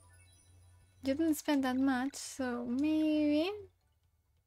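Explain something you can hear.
A young woman speaks with animation, close to a microphone, in a high, sing-song voice.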